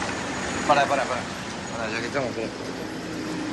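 A man speaks briefly in a calm voice, close by.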